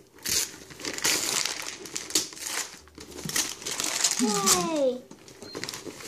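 Wrapping paper rips and crinkles up close.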